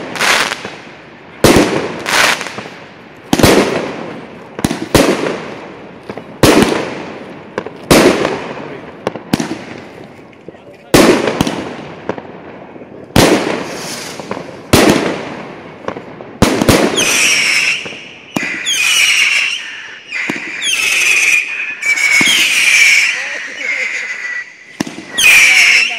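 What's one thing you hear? Fireworks burst with loud booming bangs that echo away.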